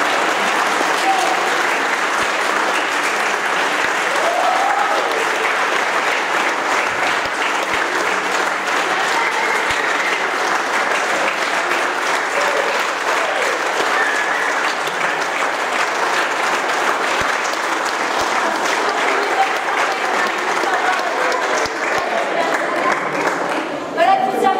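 A large choir of children sings together in a reverberant hall.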